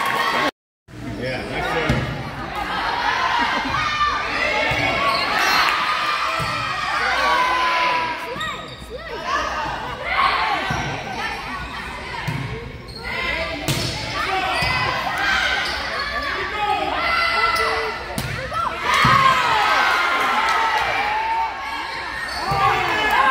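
A volleyball is struck by hand.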